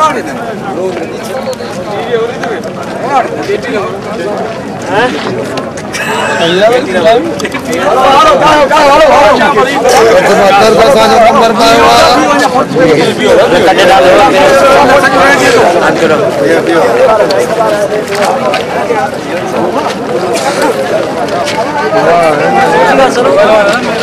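A crowd of men talks over one another outdoors.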